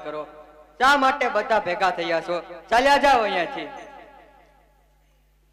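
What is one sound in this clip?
A young man sings out loudly through a microphone and loudspeakers, with a long echo.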